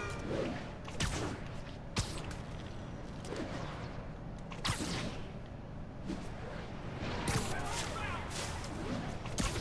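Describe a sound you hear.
Web lines shoot out with sharp whooshing snaps.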